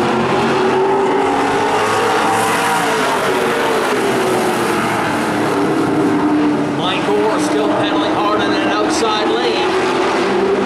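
Race car engines roar loudly around an outdoor track.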